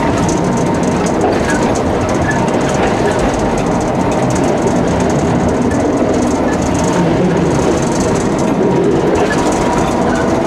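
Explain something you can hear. Steel wheels click over rail joints.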